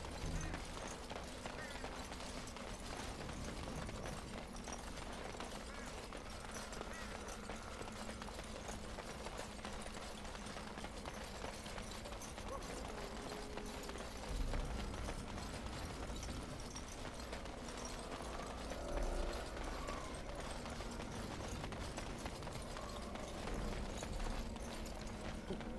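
Footsteps tread steadily on dirt ground.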